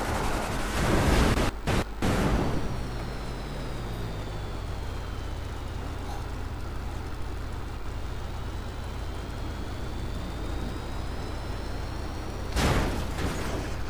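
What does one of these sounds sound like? A vehicle crashes and thuds against rocks.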